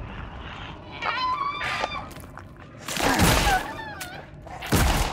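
A monster shrieks and growls up close.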